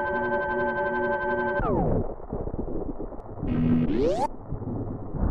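A retro video game plays electronic beeps and falling tones.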